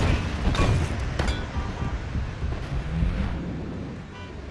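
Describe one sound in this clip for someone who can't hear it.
Heavy footsteps pound on pavement.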